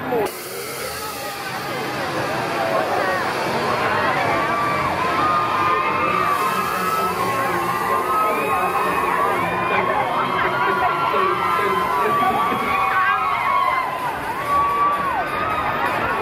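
A crowd of young women screams and cheers excitedly outdoors.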